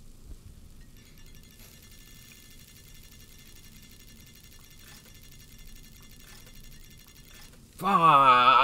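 A slot machine's reels spin with a ringing, ticking jingle.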